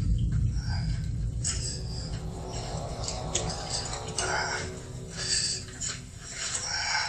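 A low wind rumbles outdoors.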